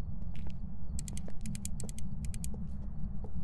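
A handheld meter crackles with rapid clicks.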